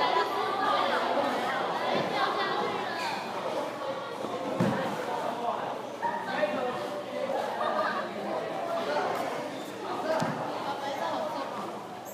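Young men shout and call out in a large echoing hall.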